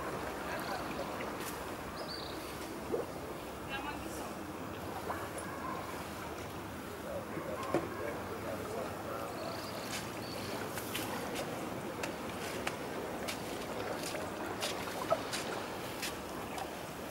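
Gentle water laps quietly at the shore.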